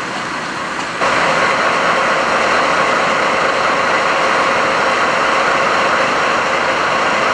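A diesel locomotive idles.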